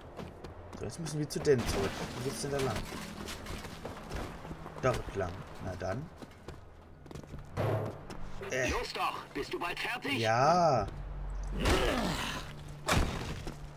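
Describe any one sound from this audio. Heavy boots thud on dirt and metal.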